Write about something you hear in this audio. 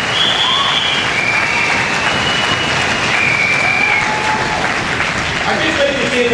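An older man speaks loudly into a microphone in an echoing hall.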